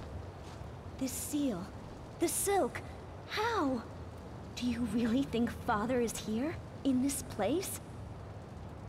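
A young woman speaks in a worried, hushed voice.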